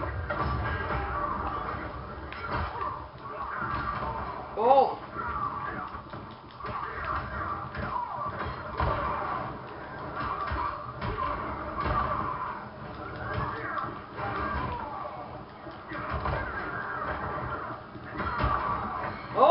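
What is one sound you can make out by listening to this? Fighting game sounds of punches, blasts and crashes play through a television speaker.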